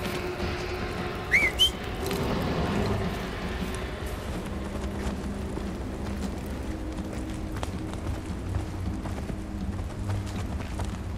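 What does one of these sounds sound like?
Footsteps crunch on gravel and rock.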